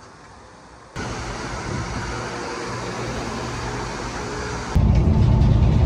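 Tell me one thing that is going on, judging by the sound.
Traffic passes along a busy street outdoors.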